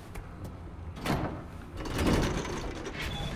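A metal lever clanks as it is pulled.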